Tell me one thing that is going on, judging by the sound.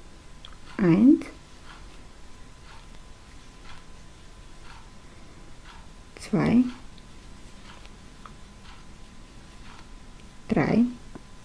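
A crochet hook taps and scrapes softly through yarn.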